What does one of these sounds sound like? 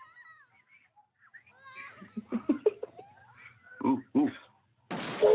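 Children shout and scream excitedly.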